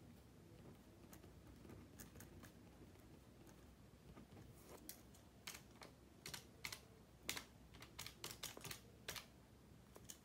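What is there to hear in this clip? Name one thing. A pen scratches and taps on paper close by.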